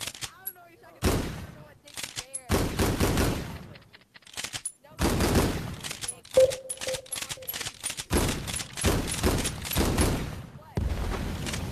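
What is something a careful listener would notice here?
A rifle fires in rapid bursts of loud, sharp shots.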